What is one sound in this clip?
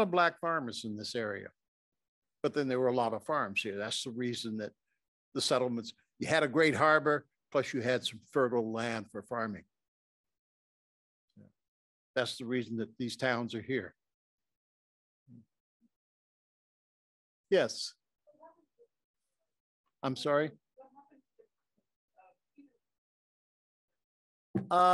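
An elderly man speaks calmly into a microphone, pausing often.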